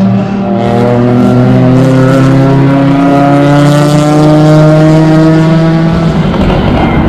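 A race car engine roars loudly, its pitch slowly falling as it drives away.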